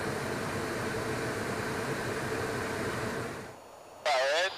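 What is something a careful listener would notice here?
Jet engines drone steadily, then cut off abruptly.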